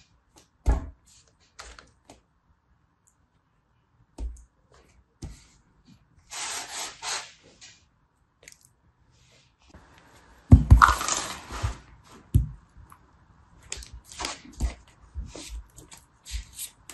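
Hands squish and knead soft play dough with soft crackles.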